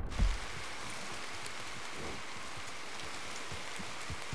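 A horse's hooves thud slowly on soft ground.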